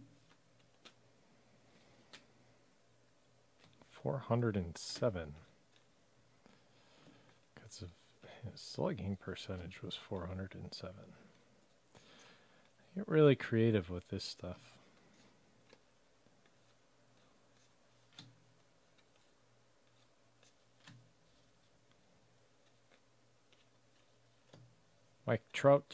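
Trading cards rustle and flick softly as hands sort through them.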